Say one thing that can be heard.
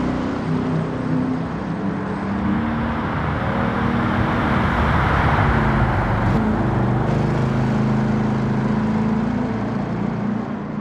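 A car engine roars loudly, shifting pitch as the car speeds along.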